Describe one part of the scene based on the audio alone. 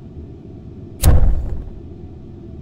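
A lighter clicks and its flame catches with a soft whoosh.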